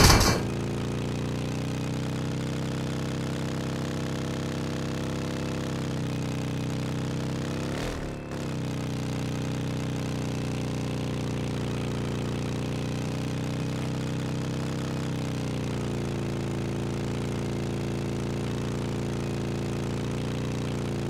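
A truck engine drones steadily, rising and falling slightly in pitch.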